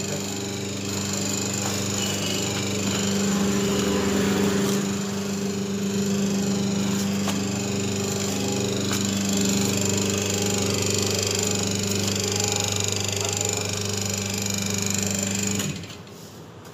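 A hydraulic machine hums steadily, then stops.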